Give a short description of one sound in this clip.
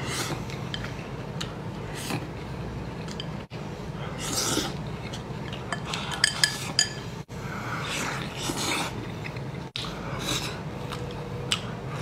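Chopsticks scrape against a bowl.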